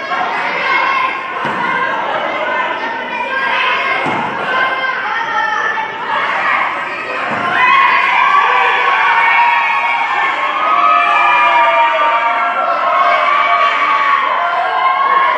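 A crowd of spectators talks and cheers in a large echoing hall.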